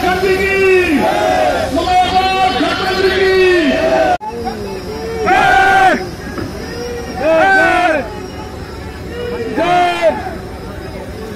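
A man speaks loudly through a loudspeaker with animation.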